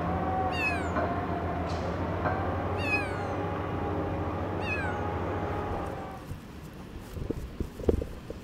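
Light footsteps patter on the ground as a small child runs.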